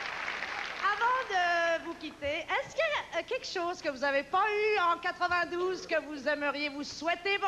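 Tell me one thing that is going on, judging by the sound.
A group of men and women sing together through microphones.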